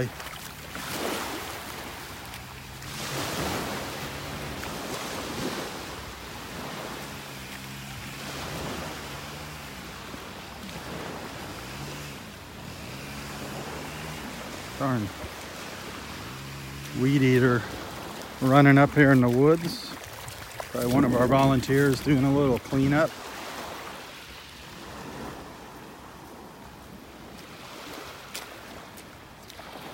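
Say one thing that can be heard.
Small waves lap gently on the shore.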